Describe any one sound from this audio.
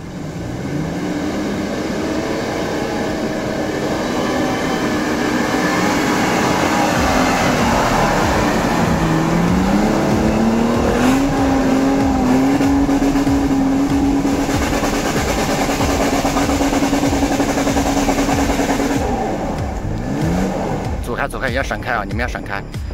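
An engine revs and strains as an off-road vehicle climbs.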